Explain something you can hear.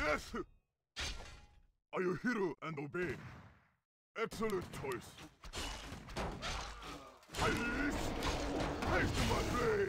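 Weapons clash and strike as small figures fight.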